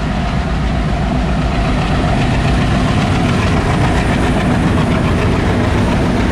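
A diesel locomotive engine roars loudly close by.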